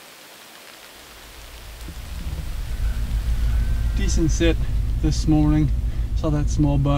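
A vehicle engine rumbles low and steady from inside the cab.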